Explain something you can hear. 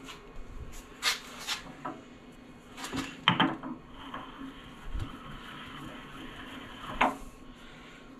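A metal fitting clunks and scrapes as it is pushed into place.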